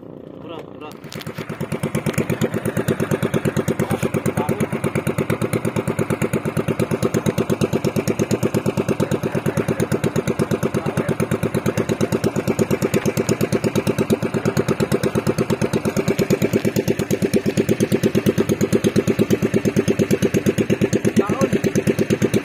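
A small outrigger boat's engine chugs as the boat moves.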